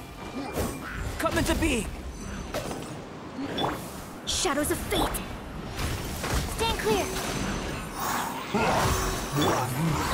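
Blades slash and clash in a rapid fight.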